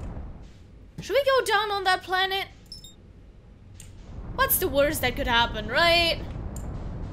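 A young woman speaks with animation through a headset microphone.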